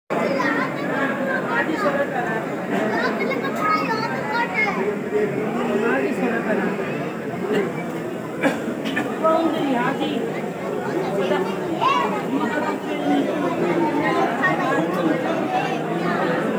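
A crowd of adults and children chatter all around.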